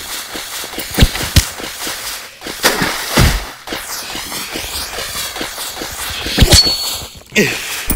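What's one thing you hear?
Sharp punching thuds land one after another.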